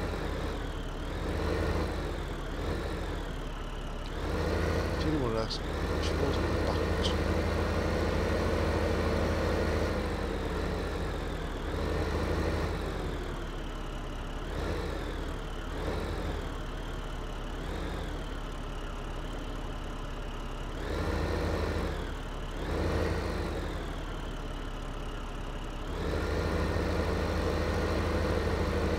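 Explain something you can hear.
A tractor engine rumbles steadily and revs up and down.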